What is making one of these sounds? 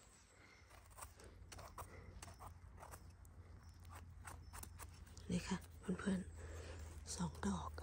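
A small knife scrapes softly at a mushroom stem.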